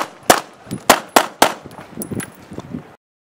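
Pistol shots ring out in quick succession outdoors.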